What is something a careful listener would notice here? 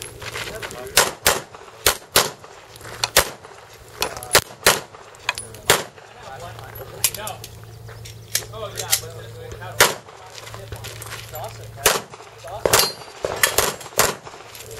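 A pistol fires sharp shots in quick pairs outdoors, with a short echo.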